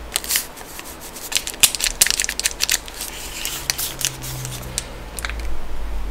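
A plastic candy wrapper crinkles close to the microphone.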